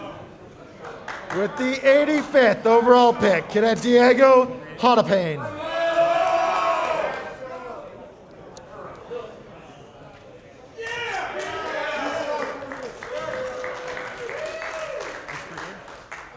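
A young man shouts loudly in a large echoing room.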